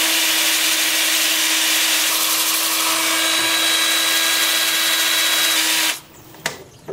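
A spinning sanding pad hisses against wood.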